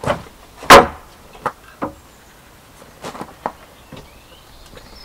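Wooden planks knock and clatter as they are stacked.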